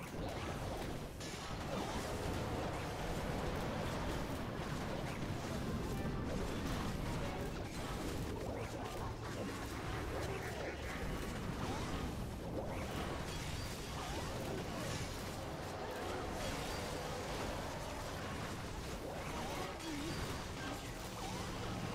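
Game battle sounds of explosions and clashing weapons play continuously.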